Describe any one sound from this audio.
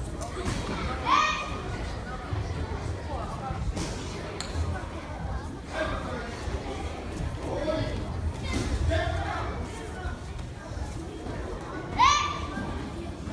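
A child shouts sharply and loudly in short bursts.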